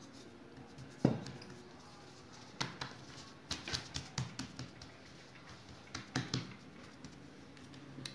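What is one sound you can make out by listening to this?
Hands slap and press dough on a wooden table.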